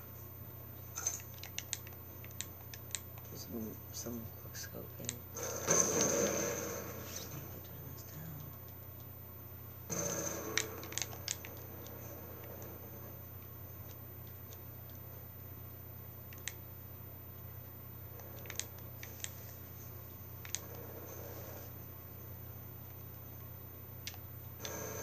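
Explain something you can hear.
Gunshots from a video game crack through a television speaker, in short bursts.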